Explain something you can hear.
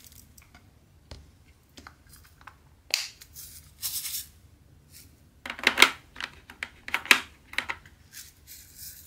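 Plastic film crinkles and rustles under fingers.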